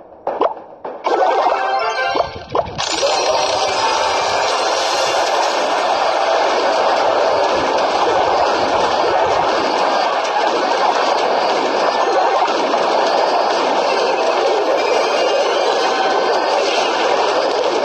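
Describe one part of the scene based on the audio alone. Game battle sounds clash and thud as small troops fight.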